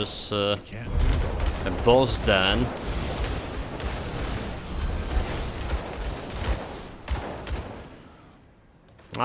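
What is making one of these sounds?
Magic blasts and impacts crash in a fight.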